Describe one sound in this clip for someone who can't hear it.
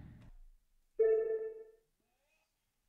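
A short electronic chime rings.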